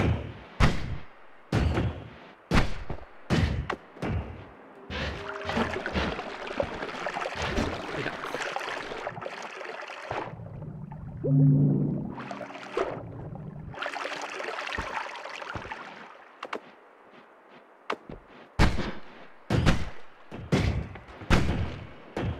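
Magic blasts burst sharply again and again.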